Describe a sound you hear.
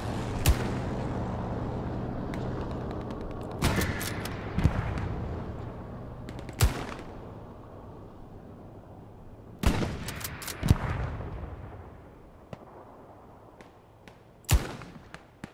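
A rifle fires loud shots that echo and rumble away.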